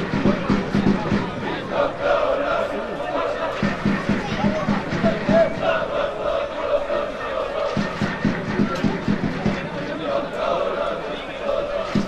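Men shout to each other across an open field outdoors.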